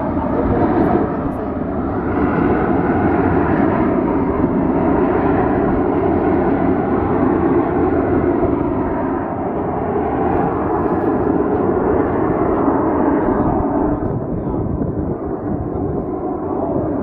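Jet planes roar steadily in the distance overhead.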